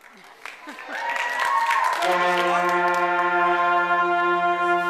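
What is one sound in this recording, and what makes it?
A school band starts playing a sustained chord on woodwinds and brass in a large hall.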